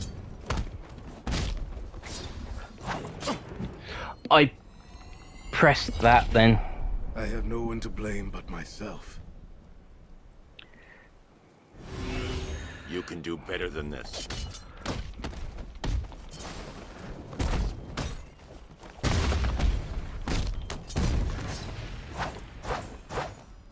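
Heavy punches and kicks land in quick succession.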